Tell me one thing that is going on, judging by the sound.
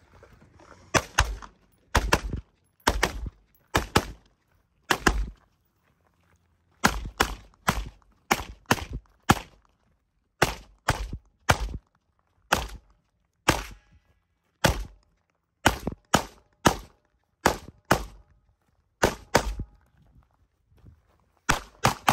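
Gunshots crack loudly and echo outdoors, fired in quick pairs and bursts.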